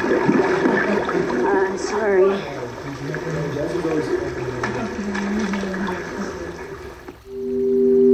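Several men and women talk and react nearby.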